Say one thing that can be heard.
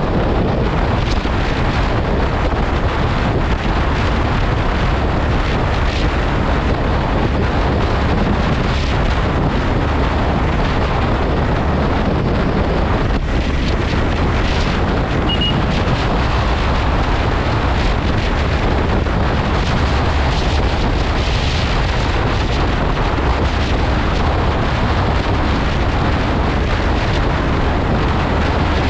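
Strong wind rushes loudly past the rider.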